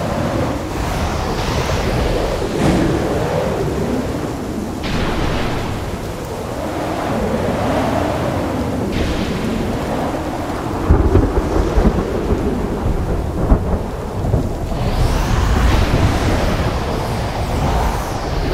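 Rocket jets roar steadily.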